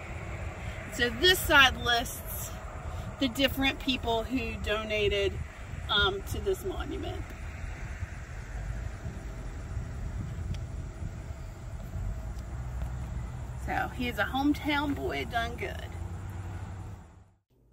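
A woman talks calmly close by, outdoors.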